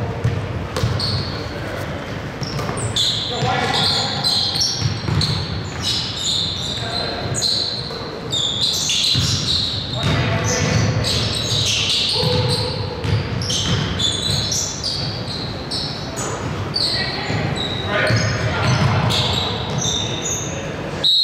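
Men shout and call out to each other across a large echoing gym.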